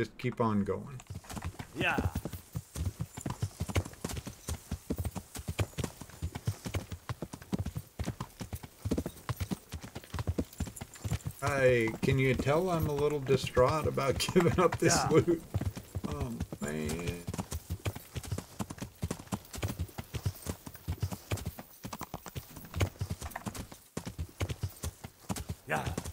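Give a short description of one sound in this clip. Horse hooves clop steadily on a dirt track.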